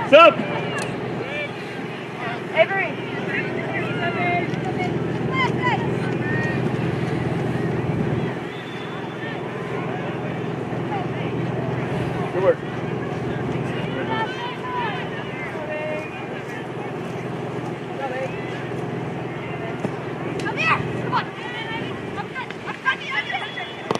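Spectators call out and cheer from a distance.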